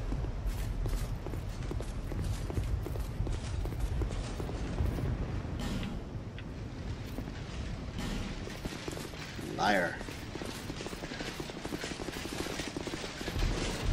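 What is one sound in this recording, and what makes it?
Armoured footsteps run across a stone floor.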